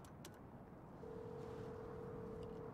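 A telephone dial tone hums steadily.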